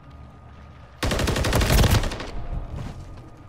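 A suppressed rifle fires a rapid burst.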